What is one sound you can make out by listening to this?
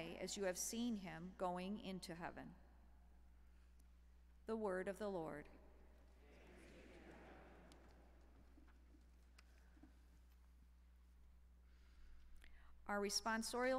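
A middle-aged woman reads out calmly through a microphone in a large echoing hall.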